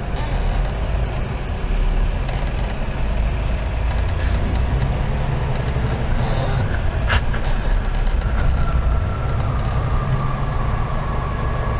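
A truck engine rumbles steadily inside the cab.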